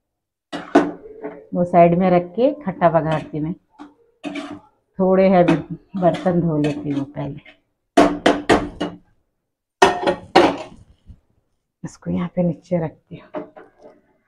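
A spoon scrapes and clinks against a metal pot.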